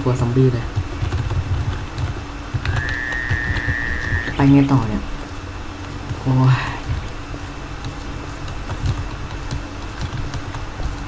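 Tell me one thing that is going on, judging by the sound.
Footsteps thud steadily on hard pavement.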